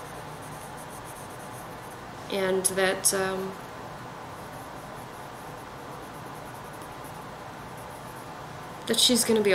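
A pencil scratches and shades softly on paper.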